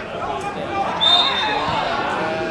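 A referee's whistle blows once, short and sharp.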